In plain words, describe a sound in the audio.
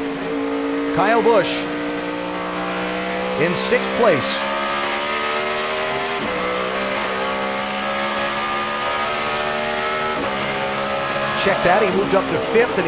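Other race cars roar past close by.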